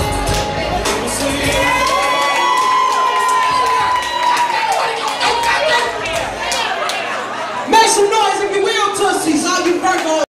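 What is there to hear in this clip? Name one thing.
A man sings loudly.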